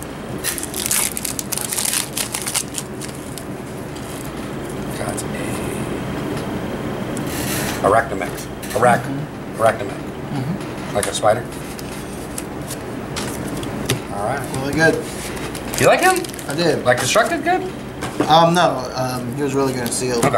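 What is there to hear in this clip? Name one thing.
Playing cards rustle and slide against each other.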